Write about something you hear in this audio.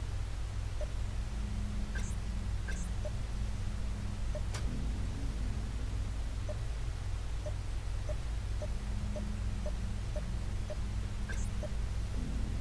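Soft electronic blips sound as a menu is scrolled.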